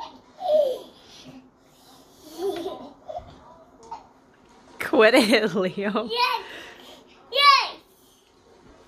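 A young child talks and squeals nearby.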